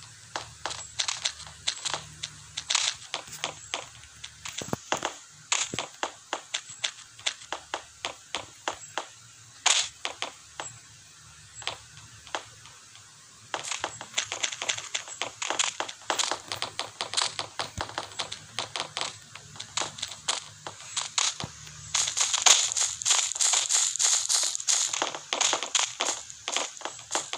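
Quick game sound effects of hits and block clicks tap rapidly.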